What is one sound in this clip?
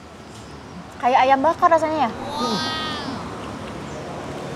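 A young woman talks and exclaims close by.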